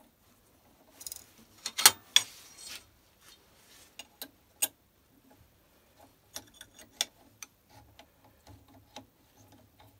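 A steel clamp clicks and taps against a machine spindle.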